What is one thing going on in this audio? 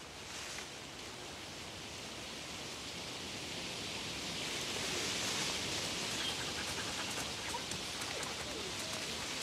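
Dry leaves rustle and crunch under many footsteps.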